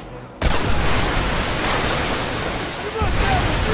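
Water splashes and sprays loudly.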